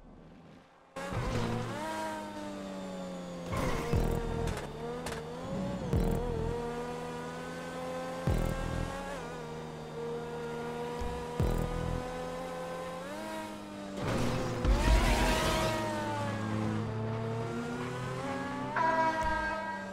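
A race car engine roars at high revs, its pitch rising and falling as it shifts gears.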